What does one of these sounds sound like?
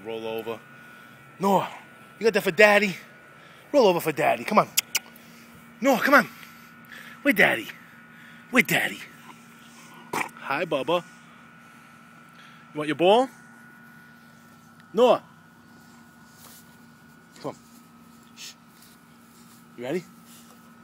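A dog whines in short, high bursts close by.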